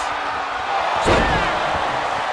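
A heavy body slams onto a wrestling ring mat with a loud thud.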